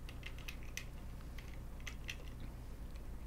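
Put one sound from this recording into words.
Small tools click lightly against metal parts.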